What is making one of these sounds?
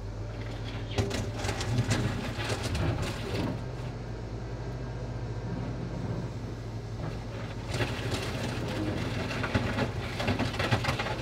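Metal parts of a loader clank and rattle.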